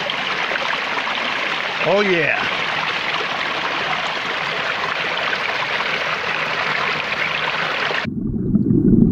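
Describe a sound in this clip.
Water rushes and splashes over rocks close by.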